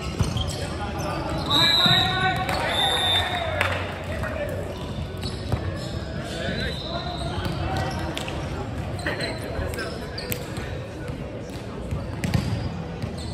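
Young men shout and call out to each other in a large echoing hall.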